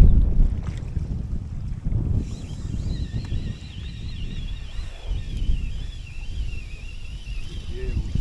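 Wind gusts and rumbles across an open outdoor space.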